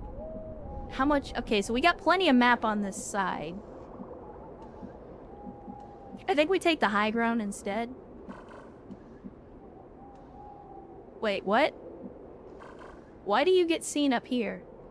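A young woman talks with animation into a close microphone, in short bursts with pauses.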